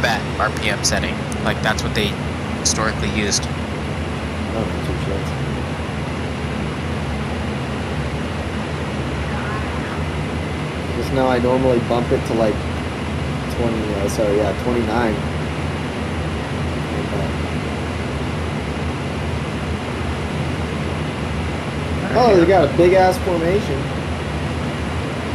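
An aircraft engine drones steadily.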